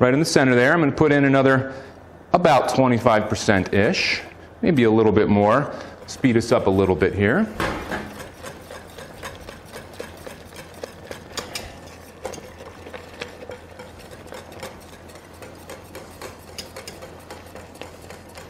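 A whisk clatters against a metal pot.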